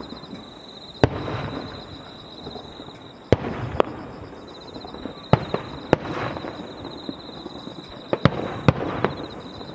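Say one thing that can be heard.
Fireworks boom sharply in the distance, one after another.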